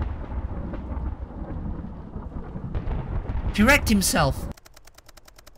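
Rain falls steadily with a low rumble.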